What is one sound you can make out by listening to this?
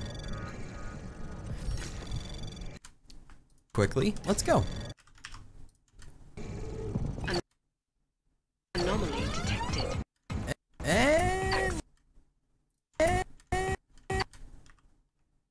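Electronic sound effects whoosh and chime in short bursts.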